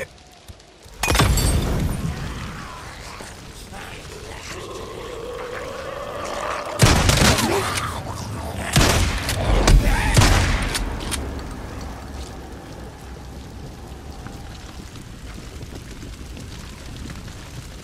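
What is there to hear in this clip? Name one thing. A fire bursts into flames and roars loudly.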